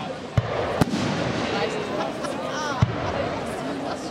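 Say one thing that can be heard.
A firework rocket whistles as it shoots upward.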